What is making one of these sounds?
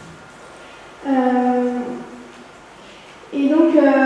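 A woman speaks into a microphone in an echoing hall.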